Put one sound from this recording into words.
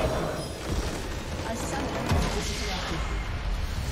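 A large structure explodes with a deep boom.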